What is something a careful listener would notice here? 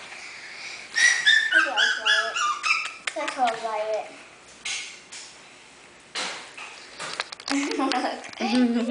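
Puppies whimper and yelp in high squeaky cries.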